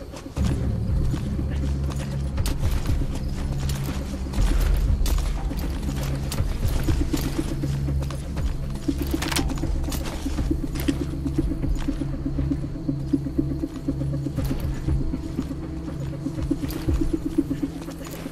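Boots scrape and shuffle on gravel.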